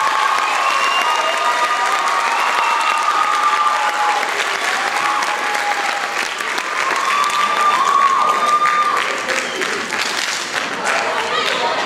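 A piano plays along.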